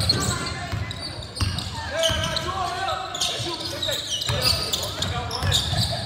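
A basketball thumps as it is dribbled on the court.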